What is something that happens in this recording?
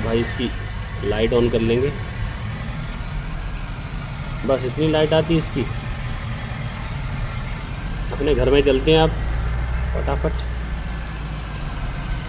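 A car engine hums steadily and speeds up.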